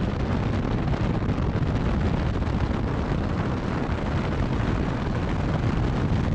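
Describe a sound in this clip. Wind buffets the microphone.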